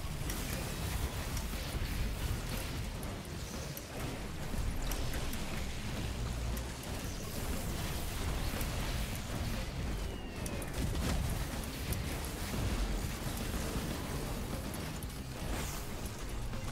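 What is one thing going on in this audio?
Deep booming explosions rumble throughout.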